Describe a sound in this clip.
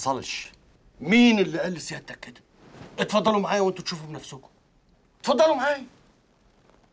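A middle-aged man speaks with animation up close.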